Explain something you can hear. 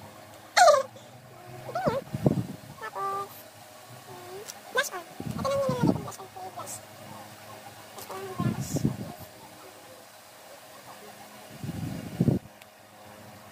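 A young woman speaks casually and close by in short bursts.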